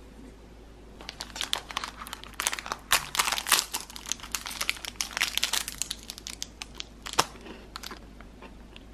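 A plastic wrapper crinkles as it is torn open.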